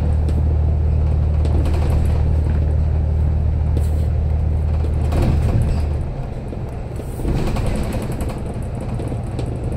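Tyres roll over the road with a constant rushing noise.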